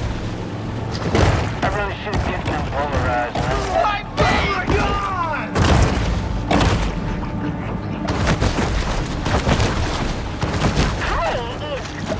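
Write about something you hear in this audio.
Water splashes as a shark thrashes at the surface.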